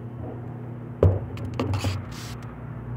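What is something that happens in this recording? A metal spoon clinks against a plastic cup.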